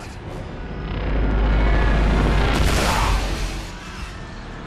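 A loud blast roars and rumbles.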